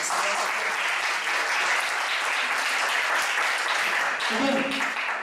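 A group of people applaud in a room.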